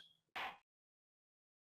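A gavel bangs once.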